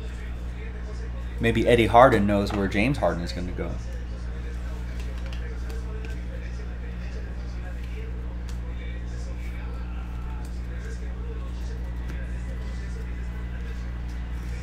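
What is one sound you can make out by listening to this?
Trading cards slide and tap softly against each other.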